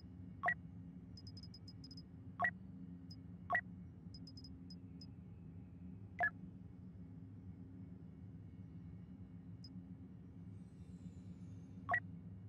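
Short electronic menu chimes sound now and then.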